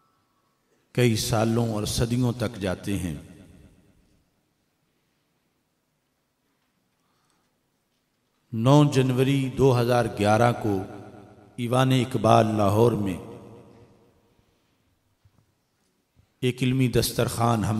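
An elderly man speaks slowly and earnestly into a microphone, with pauses between phrases.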